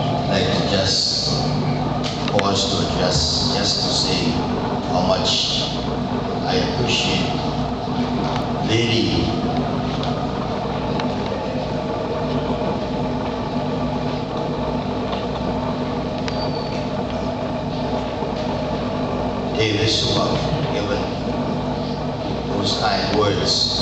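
A man speaks into a microphone over a loudspeaker, in a large echoing hall.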